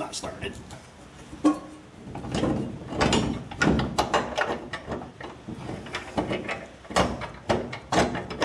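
Metal parts click and knock as hands work on them.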